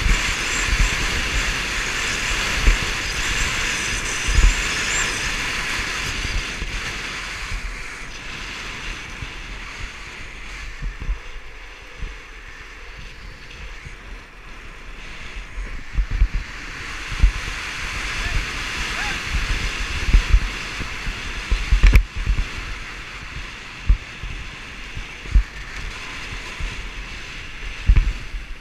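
Wind rushes past, buffeting loudly.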